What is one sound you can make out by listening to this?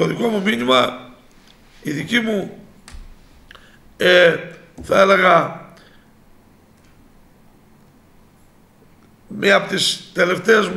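A middle-aged man speaks calmly into microphones, in short bursts with pauses.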